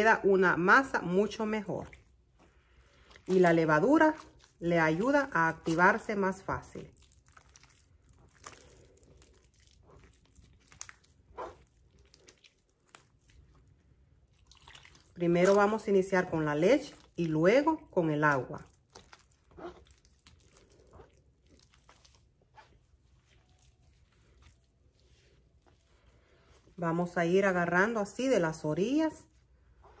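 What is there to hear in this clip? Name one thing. Fingers squish and knead wet dough in a pile of flour.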